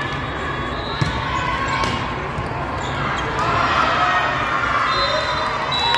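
A volleyball is hit back and forth with dull thuds.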